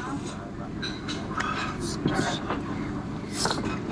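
A man speaks contentedly, close by.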